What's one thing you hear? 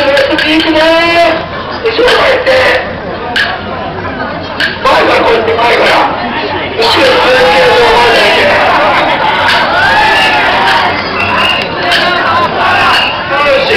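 A crowd of men and women chants and shouts outdoors.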